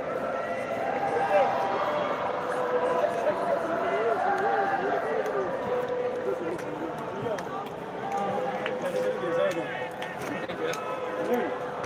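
Young men talk and laugh loudly close by.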